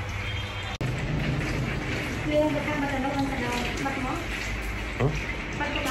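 Water sprays from a shower head onto hair.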